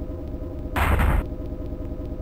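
A metal robot crashes heavily to the floor.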